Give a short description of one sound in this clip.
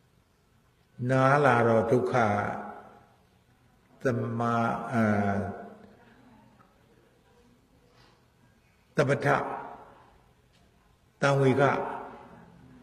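An elderly man speaks slowly and calmly into a microphone, in short phrases with pauses.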